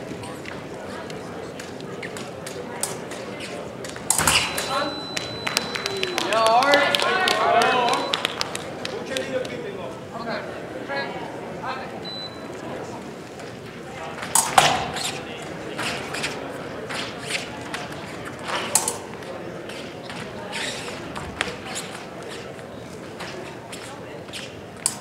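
Fencers' shoes stamp and squeak on the strip.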